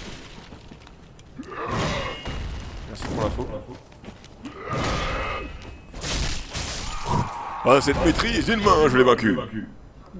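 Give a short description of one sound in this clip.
Sword slashes and metal clashes ring out.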